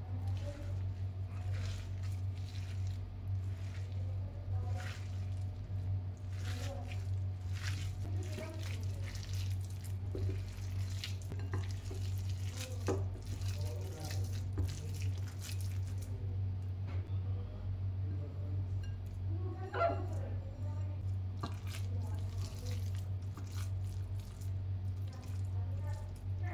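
A hand squishes and kneads a soft, wet mixture in a plate.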